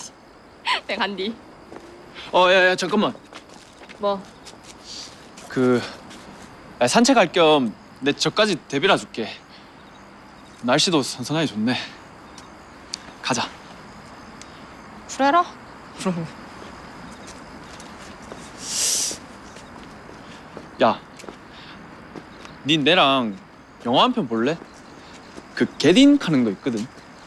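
A young man calls out and talks calmly.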